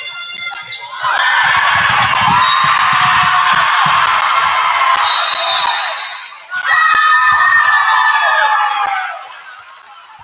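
A crowd cheers and shouts loudly, then dies down.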